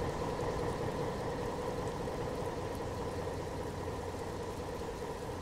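A train rolls slowly along the tracks.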